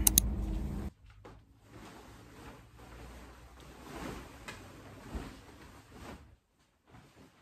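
Bedding rustles as it is shaken out.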